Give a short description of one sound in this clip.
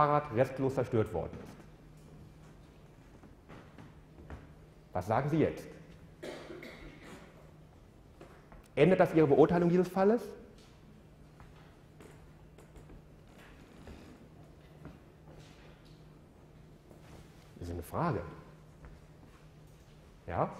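A man lectures through a microphone in a large room, speaking in short bursts with pauses.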